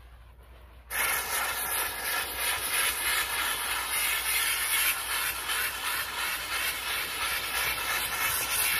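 A steam cleaner hisses loudly up close.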